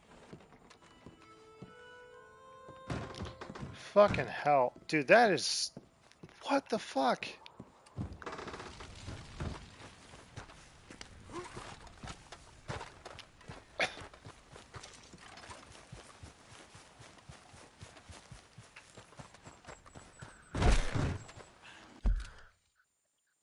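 Footsteps thud on wooden boards and then on soft ground.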